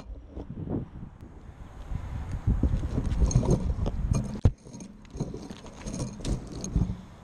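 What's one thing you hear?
Pine branches rustle and scrape close by.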